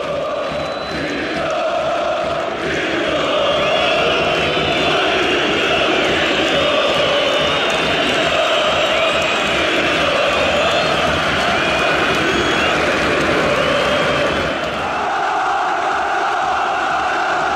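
A large stadium crowd chants and cheers loudly all around.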